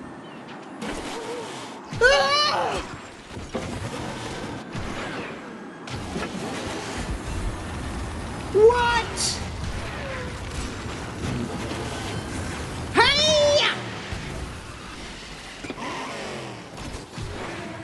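A racing kart engine roars steadily at high speed.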